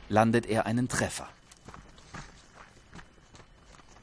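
Footsteps crunch on dry grass.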